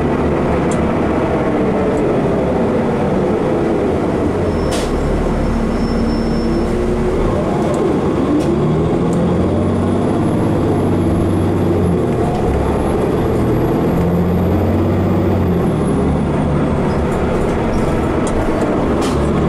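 A bus interior rattles over the road.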